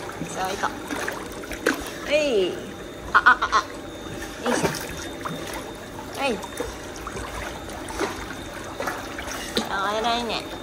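Water splashes and laps as a dog paddles close by.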